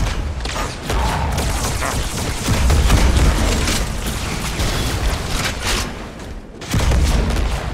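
Energy weapons fire and blasts explode with loud crashes.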